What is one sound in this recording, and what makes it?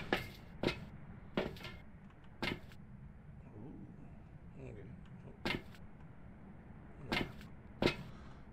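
Footsteps clank on a metal grating floor.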